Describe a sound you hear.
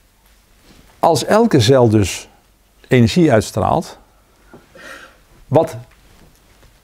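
A middle-aged man speaks calmly and clearly into a close microphone.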